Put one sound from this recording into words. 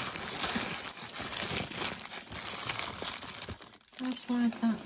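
A plastic bag crinkles and rustles up close.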